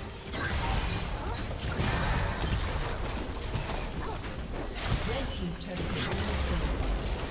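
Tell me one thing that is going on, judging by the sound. Spell effects whoosh and crackle in a busy game battle.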